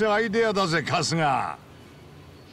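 A man speaks with animation, close up.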